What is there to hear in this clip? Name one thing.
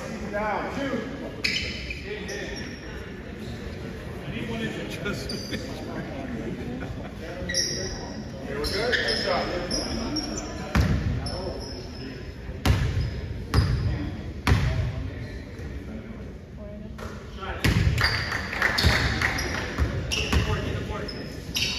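Young men talk and call out across an echoing gym.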